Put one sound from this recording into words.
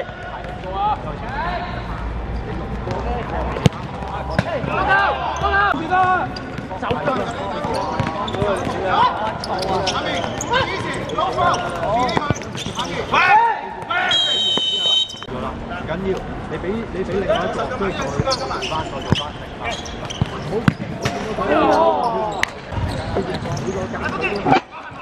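Men shout and call out across an outdoor court.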